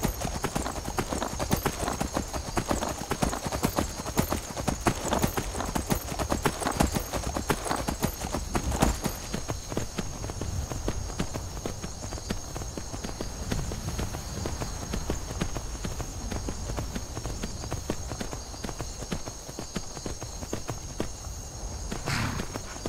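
Horse hooves clop steadily on a stone path.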